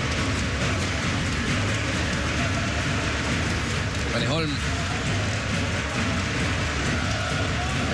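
A crowd murmurs and cheers in a large echoing arena.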